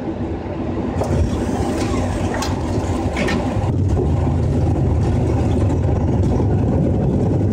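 Wheels touch down and rumble along a runway.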